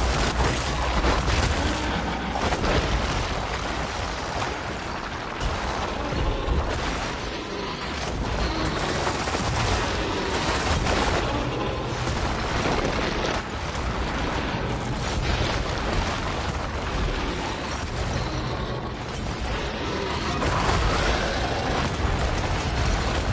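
Explosions boom and crackle again and again.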